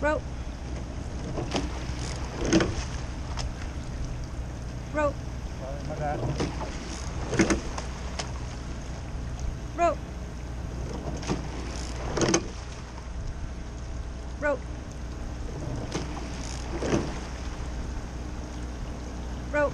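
Oars knock rhythmically in their locks with each rowing stroke.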